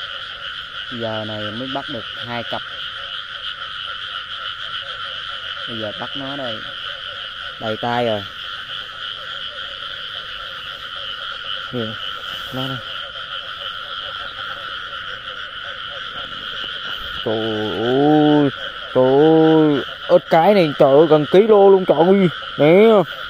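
A frog croaks in deep, repeated grunts.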